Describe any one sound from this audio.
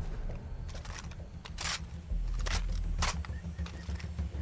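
A rifle is reloaded with metallic clicks and clacks.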